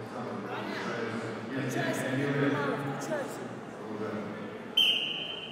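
A man calls out commands in a large echoing hall.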